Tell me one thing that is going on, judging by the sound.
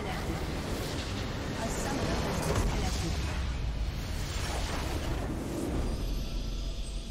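A game structure explodes with a heavy rumbling blast.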